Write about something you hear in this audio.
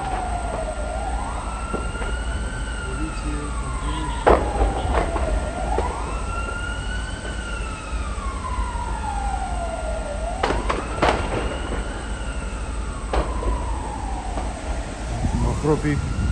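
A siren wails up and down nearby.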